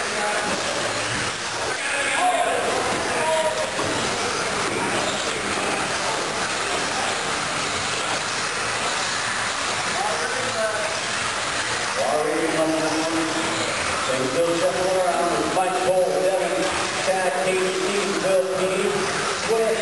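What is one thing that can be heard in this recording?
Small electric motors whine as remote-control cars race around a track.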